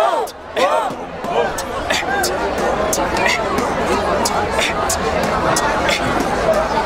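A young man raps rhythmically and with energy close by.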